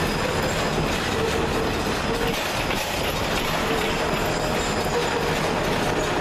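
Steel wheels squeal faintly against the rails.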